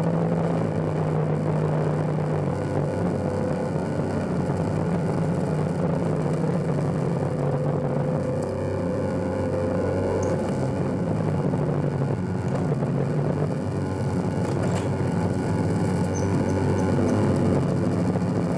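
Droning electronic synthesizer music plays loudly over speakers, with shifting low tones.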